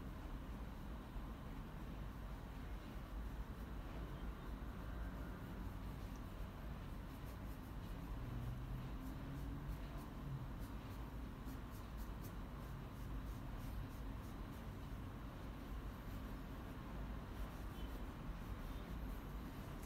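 A paintbrush softly brushes and dabs on paper.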